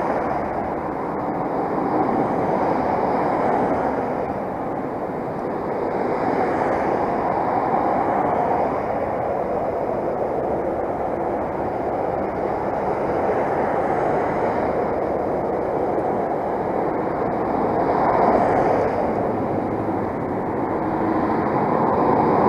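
Traffic passes along a busy road with a steady hum and rush of tyres.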